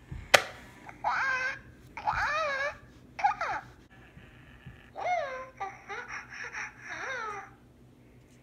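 A toy egg chirps and babbles in a high electronic voice.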